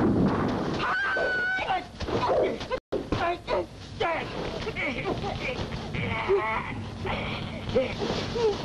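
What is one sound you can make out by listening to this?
Two men grunt and strain as they struggle.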